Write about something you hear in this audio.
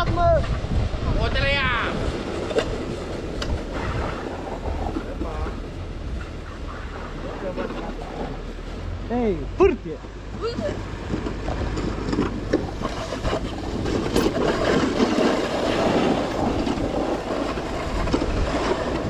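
Sled runners scrape and hiss over packed snow.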